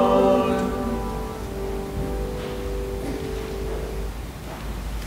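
A choir sings and fades out.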